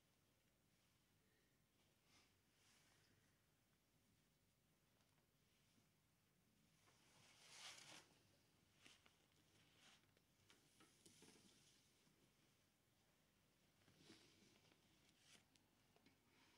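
Paper and cloth rustle close by.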